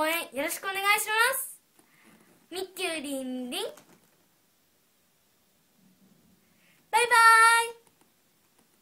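A young girl speaks and sings brightly, close by, in high, lively bursts.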